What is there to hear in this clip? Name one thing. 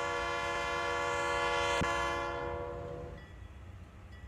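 A diesel locomotive horn blares loudly, then cuts off.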